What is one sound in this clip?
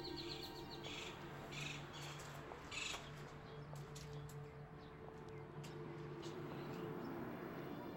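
Footsteps walk slowly across a hard floor.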